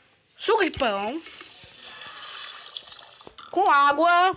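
Water pours from a tap into a glass.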